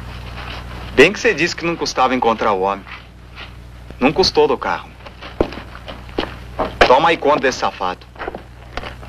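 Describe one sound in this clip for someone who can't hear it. A young man speaks firmly and clearly, close by.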